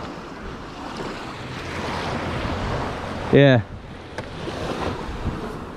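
Water splashes and rushes against a jet ski's hull.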